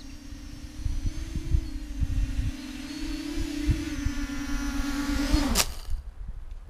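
The propellers of a small quadcopter drone whine as it hovers low, then the motors cut out.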